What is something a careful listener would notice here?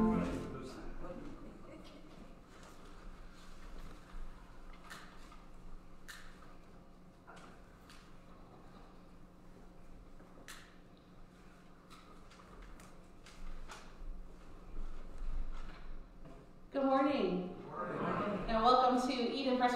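A woman speaks clearly into a microphone in an echoing hall.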